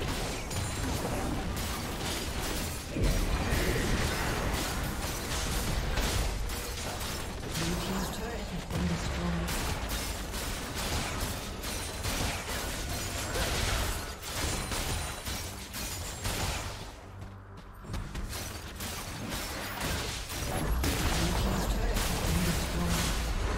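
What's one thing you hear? Magic blasts and sword hits crackle and thud rapidly in a busy fight.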